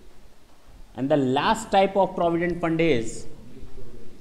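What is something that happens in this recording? A man speaks clearly into a close microphone, explaining.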